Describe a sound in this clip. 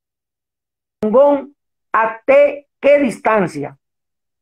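An older man speaks animatedly over an online call.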